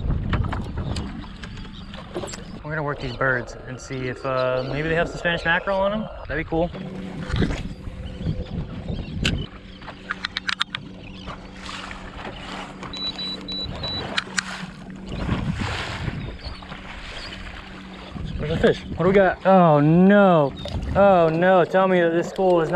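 Water laps and splashes against a boat hull.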